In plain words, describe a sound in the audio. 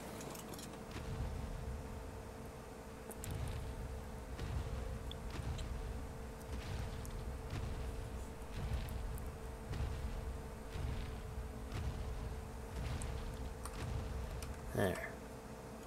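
Heavy footsteps thud in a steady rhythm.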